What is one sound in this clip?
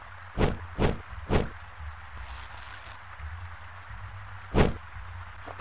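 A retro game gun fires sharp shots.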